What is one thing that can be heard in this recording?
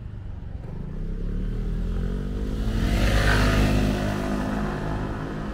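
A motor scooter's engine approaches, passes close by and moves off.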